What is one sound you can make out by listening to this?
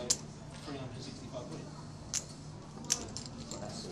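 Poker chips click together as they are gathered.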